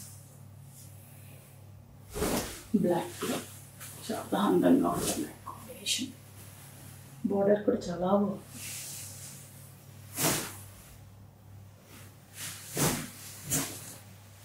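Silky fabric rustles as it is unfolded.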